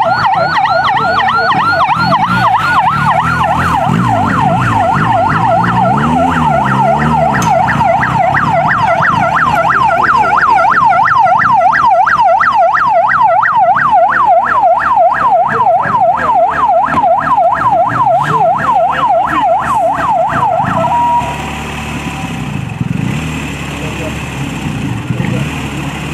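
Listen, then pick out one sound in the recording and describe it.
Car engines hum as vehicles drive slowly past.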